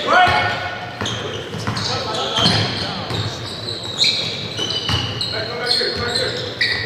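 Young men call out to each other during play in a large echoing gym.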